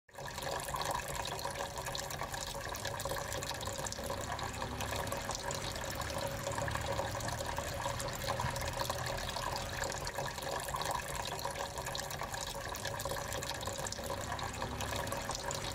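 Water trickles and splashes steadily into a small basin.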